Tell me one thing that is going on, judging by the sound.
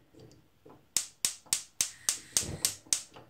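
A gas stove igniter clicks rapidly.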